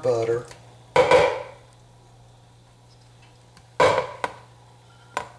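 A spatula scrapes and knocks against a plastic cup over a bowl.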